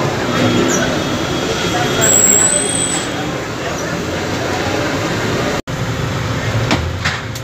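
Busy street traffic rumbles nearby.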